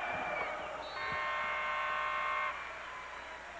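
A loud buzzer sounds steadily.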